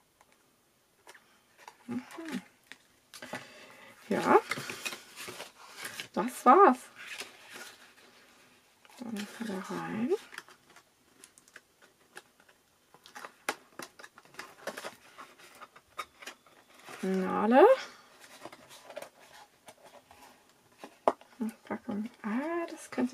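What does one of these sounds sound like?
Stiff card rustles and crinkles close by.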